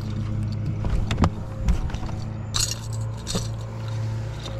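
A fish flops and thumps on a boat deck.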